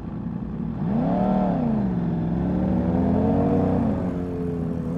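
A motorcycle engine revs up and down nearby.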